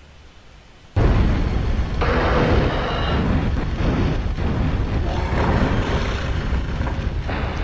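A fiery blast erupts and roars loudly.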